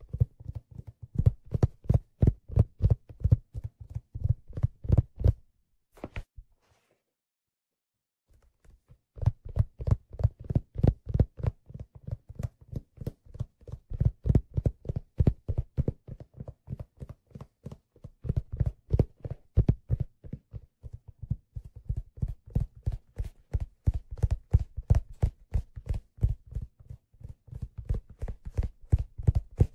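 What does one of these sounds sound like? Fingertips tap and rub rapidly on a leather surface, very close.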